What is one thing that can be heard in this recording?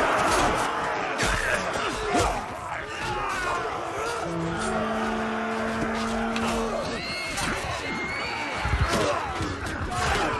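A large crowd of soldiers shouts and cries out in battle.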